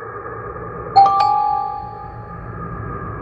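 A short bright chime rings out.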